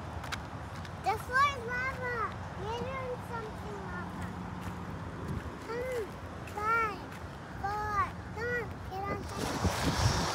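A young girl talks in a high, lively voice close by.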